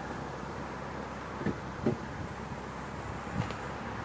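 A car door opens.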